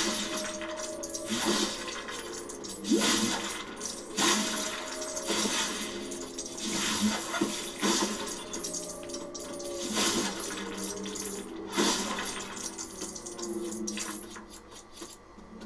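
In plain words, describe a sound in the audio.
Small metallic coins chime quickly as they are picked up.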